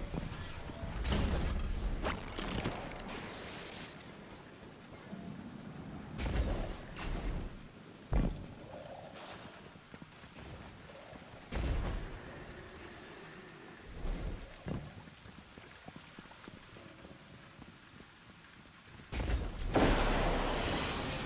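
Heavy thuds sound as a game character lands after jumps and drops.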